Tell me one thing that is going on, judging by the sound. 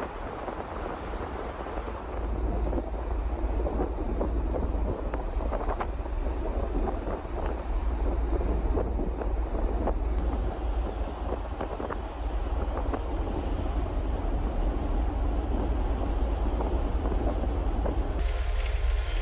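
Water churns and splashes in a ship's wake below.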